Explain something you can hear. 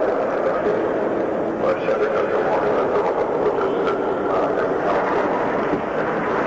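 An elderly man speaks through a microphone in a large echoing hall.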